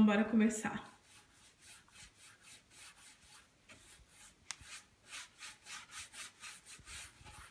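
A brush swishes back and forth across wood in quick, even strokes.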